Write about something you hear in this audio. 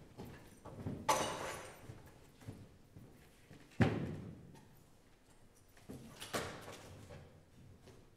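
Heavy objects thump down onto a wooden stool in a large echoing hall.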